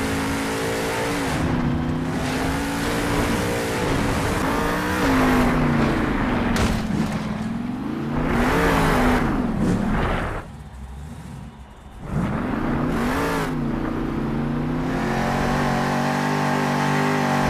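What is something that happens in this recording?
A monster truck engine roars and revs up and down.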